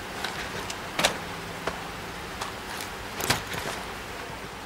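A heavy crate lid thumps open and shut.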